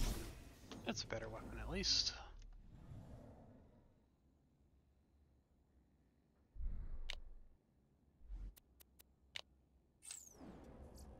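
Menu selections click and beep.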